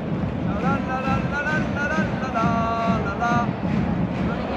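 A crowd of fans sings a chant in unison.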